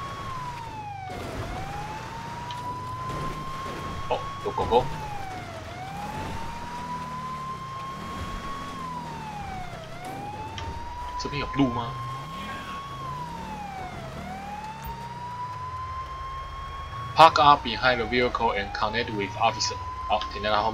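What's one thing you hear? A police siren wails steadily, rising and falling in long cycles.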